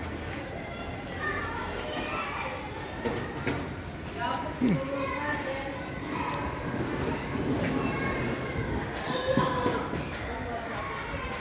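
A cat meows softly close by.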